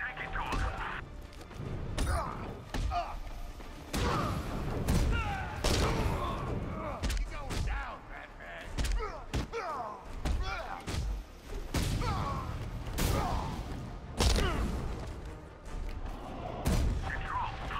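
Heavy punches and kicks land with loud, quick thuds.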